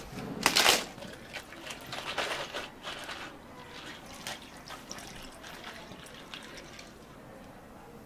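Milk pours into a cup over ice.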